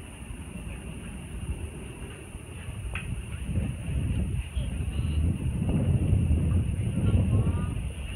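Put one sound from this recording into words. Wind rumbles across an open outdoor field.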